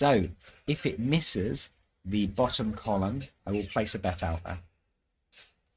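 A man speaks calmly through a loudspeaker.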